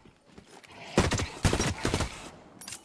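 A gun fires in a video game.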